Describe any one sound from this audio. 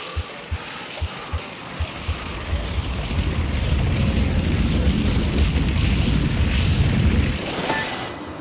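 Skis hiss and rumble down an icy ramp, growing louder with speed.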